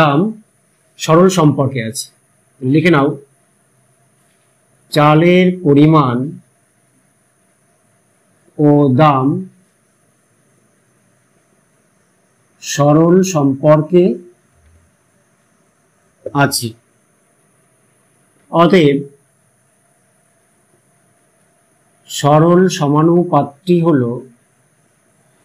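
A man speaks calmly and clearly, in short phrases with pauses, close by.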